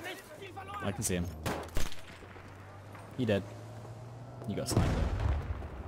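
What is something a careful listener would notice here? Gunfire cracks in short bursts nearby.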